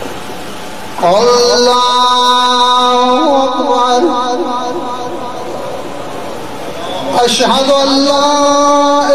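A man chants a mournful lament loudly.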